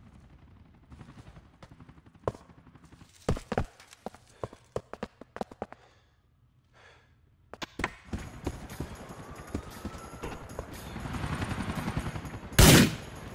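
Footsteps thud quickly on hard stairs and floors.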